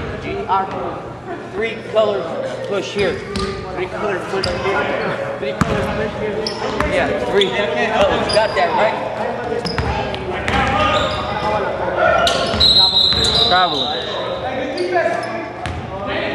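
Men shout and call out to each other across an echoing gym.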